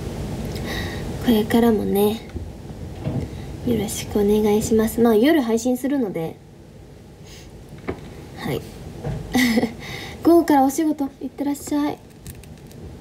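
A young woman speaks casually and close by, in short bursts with pauses.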